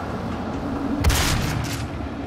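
A gun fires a loud, booming shot.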